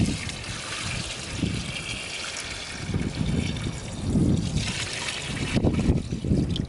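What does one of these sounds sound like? Water pours and splashes into a pot of stew.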